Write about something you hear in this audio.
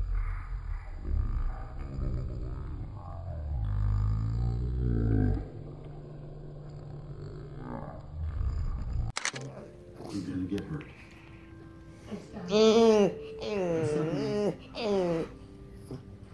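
A small dog howls and whines in long, wavering tones.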